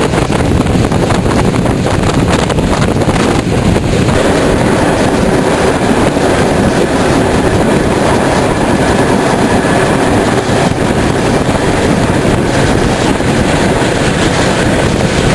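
A steam locomotive chuffs steadily as a train rolls along.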